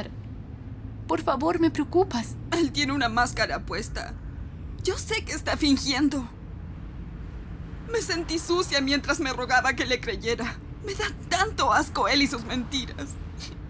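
A young woman speaks in an upset, tearful voice, close by.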